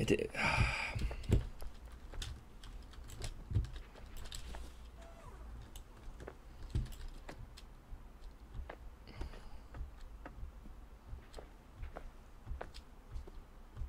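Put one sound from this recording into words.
Light footsteps patter on a hard floor.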